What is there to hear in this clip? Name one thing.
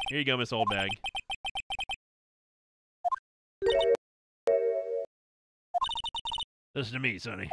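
Short electronic blips tick in rapid succession.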